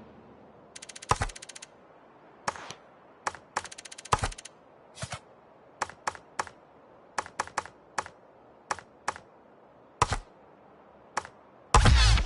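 Short menu blips sound one after another.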